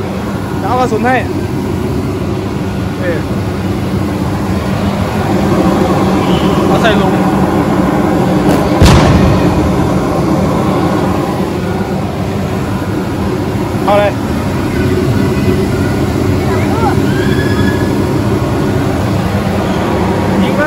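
A machine blows air with a steady whoosh.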